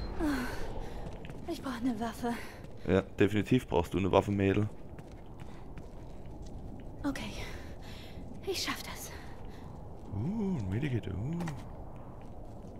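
A young man speaks close by, casually.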